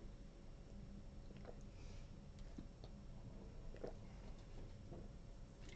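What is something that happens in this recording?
A man gulps water from a plastic bottle.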